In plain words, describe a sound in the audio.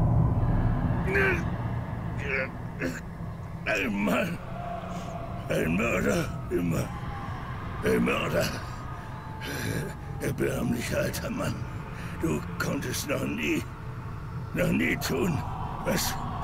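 A man in his middle years speaks weakly and haltingly, gasping between words.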